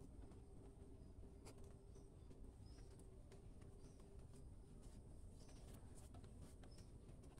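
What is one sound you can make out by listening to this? A comb scrapes through a calf's coat.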